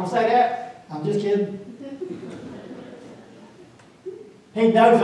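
A man speaks through a microphone with slow pauses, his voice echoing in a large hall.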